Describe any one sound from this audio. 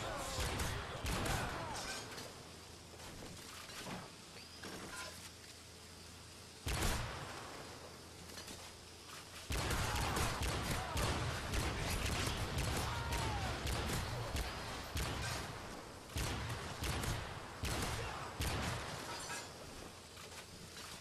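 Gunshots fire in quick bursts with loud bangs.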